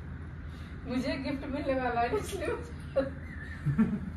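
A woman laughs shyly, close by.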